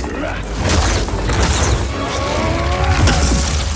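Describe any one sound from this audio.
Fire roars and whooshes.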